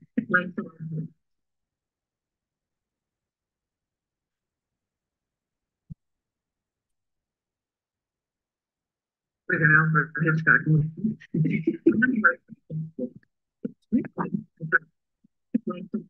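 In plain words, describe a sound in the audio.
An elderly woman speaks over an online call.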